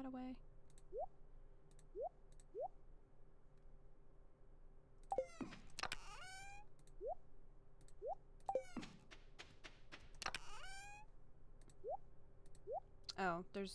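Short rising blips sound as items are moved in a game menu.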